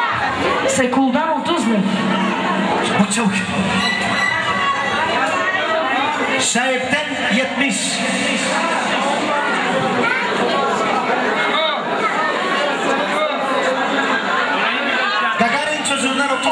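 A young man sings loudly through a microphone over a loudspeaker.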